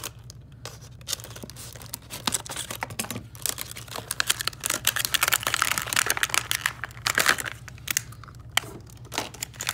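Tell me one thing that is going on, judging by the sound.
Stiff plastic packaging crinkles and crackles in hands.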